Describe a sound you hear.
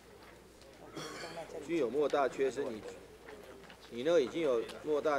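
Several men talk quietly in the background.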